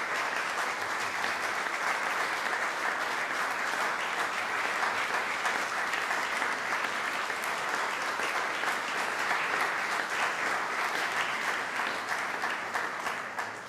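An audience applauds steadily in an echoing hall.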